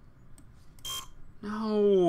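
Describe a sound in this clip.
A game's card reader gives a short error buzz.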